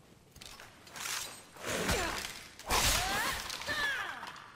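A sword swishes and clangs against bone.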